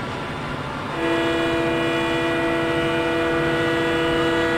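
A locomotive horn blares loudly and steadily.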